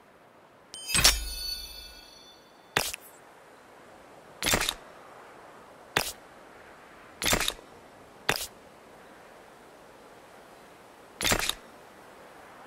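Crisp interface clicks sound now and then.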